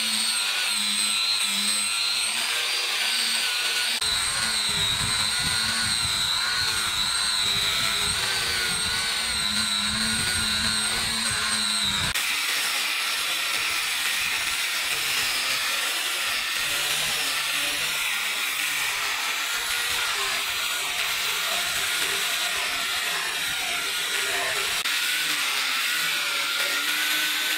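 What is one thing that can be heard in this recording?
An electric sander whirs with a steady high whine as it grinds against wood.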